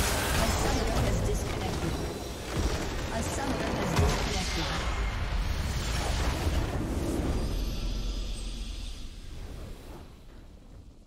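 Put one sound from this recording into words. A structure explodes with a loud, rumbling blast.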